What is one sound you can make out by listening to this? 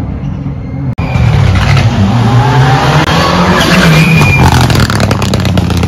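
A second rally car roars past close by with a revving engine.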